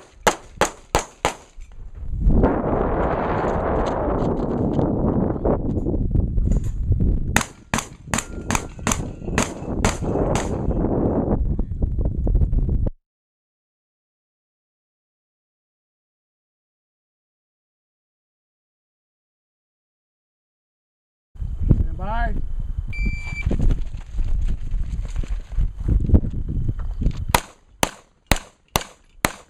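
Gunshots crack in quick bursts outdoors.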